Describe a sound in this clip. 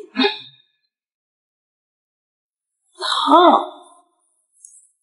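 A young woman speaks weakly and briefly, close by.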